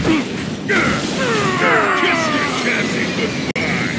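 Jet engines roar as a robot flies.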